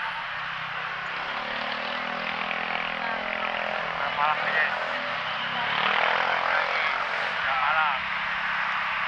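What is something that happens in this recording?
Motorcycle engines hum and buzz as they pass close by.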